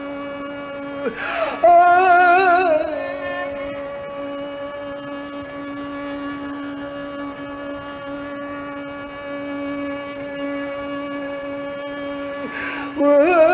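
A man sings into a microphone with a wavering voice.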